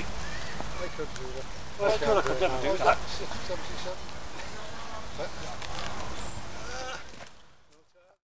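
An elderly man talks outdoors.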